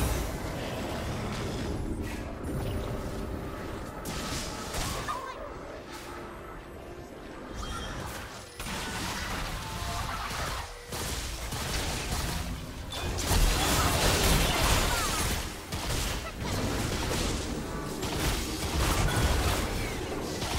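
Game character attacks strike with sharp impacts.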